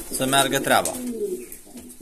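A pigeon's wings flap briefly.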